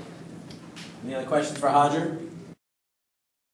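A man speaks into a microphone, heard through a loudspeaker in a large room.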